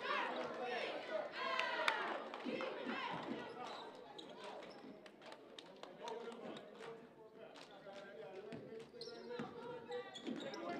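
Sneakers squeak sharply on a hard court in an echoing gym.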